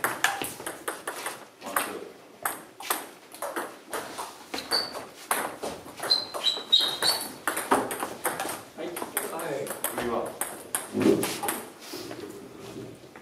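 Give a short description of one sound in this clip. A table tennis ball clicks quickly back and forth off paddles and a table in an echoing hall.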